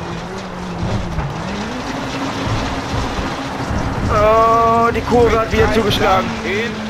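A rally car engine revs and climbs in pitch as the car speeds up.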